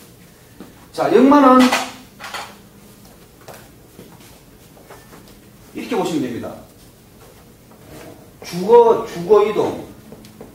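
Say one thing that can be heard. A middle-aged man speaks nearby in short bursts, explaining calmly.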